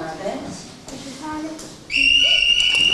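Young children chatter in a room.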